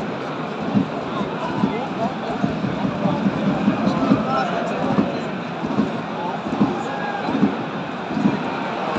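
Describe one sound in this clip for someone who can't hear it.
A large stadium crowd murmurs and chants steadily outdoors.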